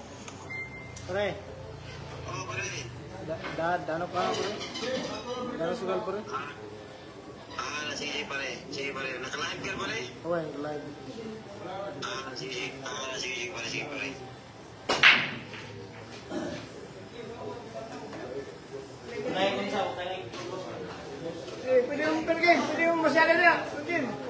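Young men talk and call out nearby with animation.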